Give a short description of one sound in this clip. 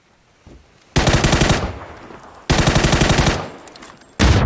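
Rapid bursts of gunfire crack loudly.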